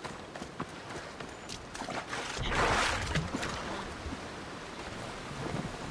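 Waves wash onto a sandy shore.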